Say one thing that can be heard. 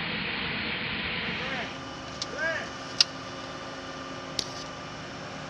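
Metal ammunition links clank as they are handled.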